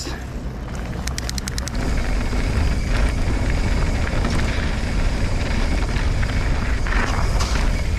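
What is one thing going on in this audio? Wind rumbles loudly across a microphone.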